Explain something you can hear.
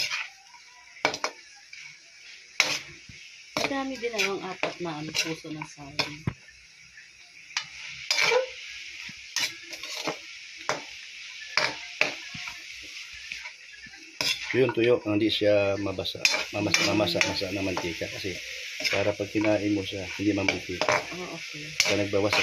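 A metal spatula scrapes and clanks against a metal wok.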